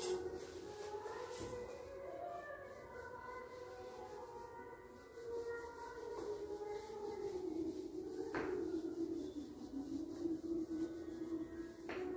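An eraser rubs across a whiteboard.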